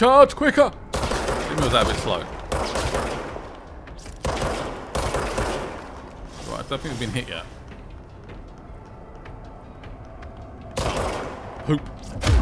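A gun fires shots in quick bursts.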